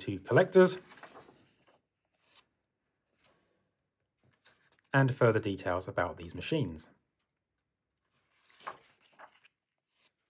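Paper pages rustle softly as they are turned.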